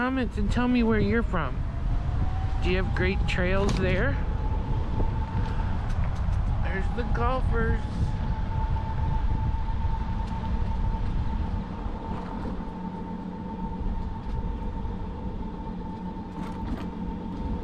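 Bicycle tyres roll over a paved path.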